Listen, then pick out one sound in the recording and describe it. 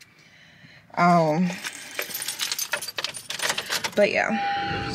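A young woman speaks with animation close to a phone microphone.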